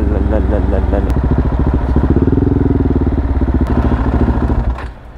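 A motorcycle engine idles with a rapid, throbbing chug, then cuts off.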